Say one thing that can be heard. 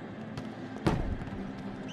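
A volleyball is struck hard with a loud smack.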